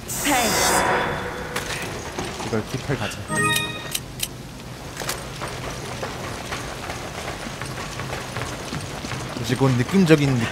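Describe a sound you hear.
Heavy footsteps clank on metal grating.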